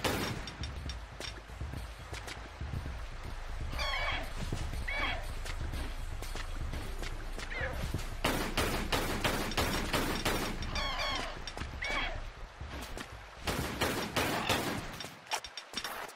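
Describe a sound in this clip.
Pistols fire in rapid bursts.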